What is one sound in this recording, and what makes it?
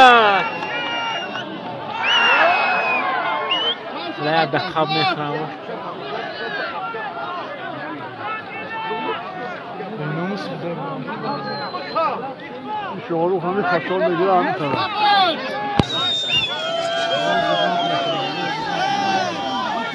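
A large crowd of men talks and shouts loudly outdoors.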